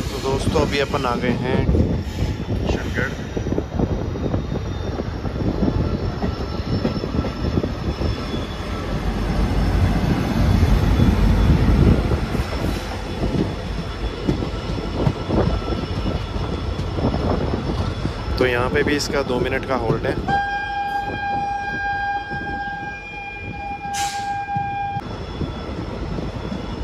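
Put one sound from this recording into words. Train wheels rumble and clatter loudly over rail joints.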